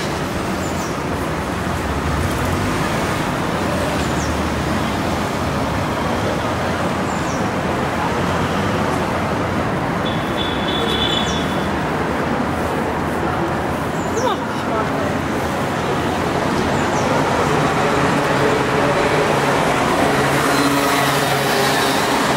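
City traffic rumbles steadily nearby outdoors.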